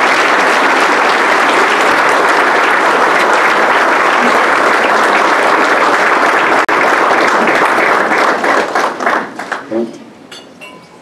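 A crowd applauds loudly in a large room, then the clapping fades away.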